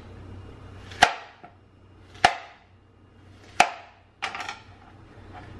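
A knife chops through fruit and knocks sharply on a plastic cutting board.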